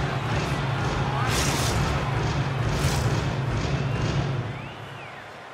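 A large crowd roars in an echoing arena.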